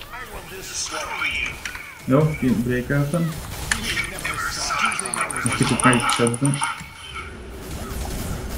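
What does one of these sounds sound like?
Magic spells burst and crackle.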